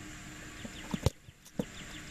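A foot kicks a football with a sharp thump.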